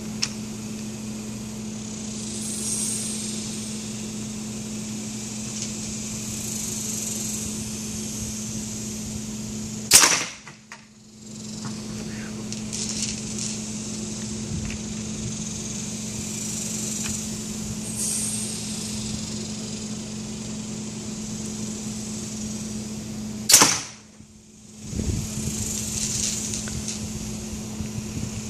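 A hand pump hisses in repeated strokes.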